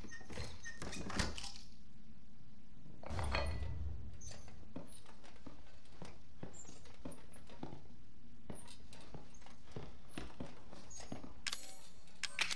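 A metal lantern handle rattles and squeaks.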